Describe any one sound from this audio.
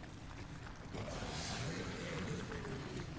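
A creature growls nearby.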